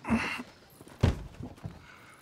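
A wooden crate thumps down onto a surface.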